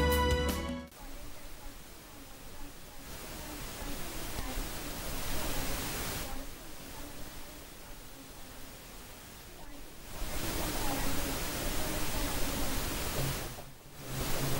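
A young woman speaks calmly into a microphone close by.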